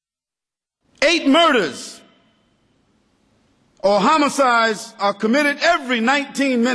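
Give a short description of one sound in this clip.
A man speaks with animation into a microphone, close by.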